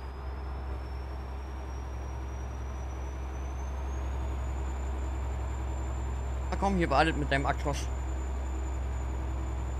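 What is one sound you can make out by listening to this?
A truck engine drones steadily, with a whine that slowly rises in pitch.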